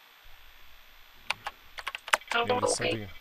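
Keys click on a computer terminal.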